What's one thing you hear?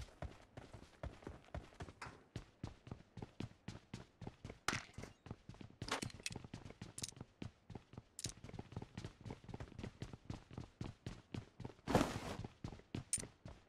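Footsteps run on concrete.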